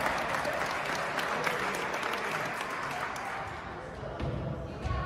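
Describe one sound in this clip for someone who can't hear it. A crowd cheers and claps in a large echoing gym.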